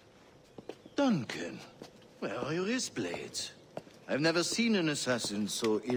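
A man speaks calmly and gravely.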